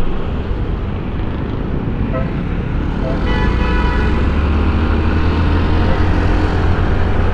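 A scooter engine hums steadily up close.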